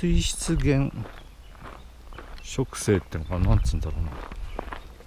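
A paper map rustles and crinkles in a hand.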